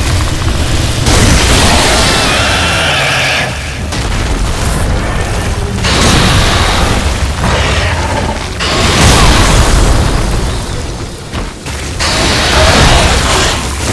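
Lightning crackles and booms in bursts.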